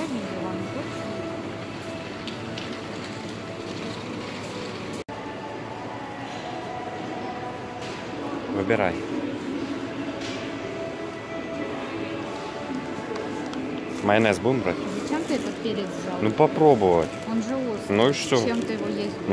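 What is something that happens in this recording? A large indoor hall hums with a low steady murmur.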